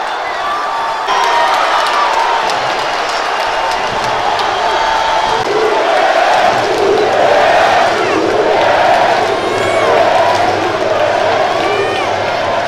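A crowd of fans sings and chants loudly together.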